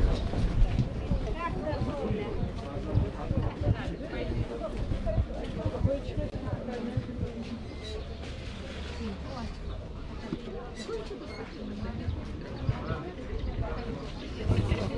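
Men and women chatter nearby outdoors.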